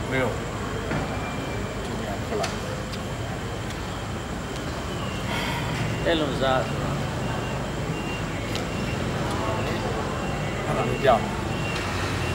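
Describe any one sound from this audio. A man speaks in short, tense bursts close by.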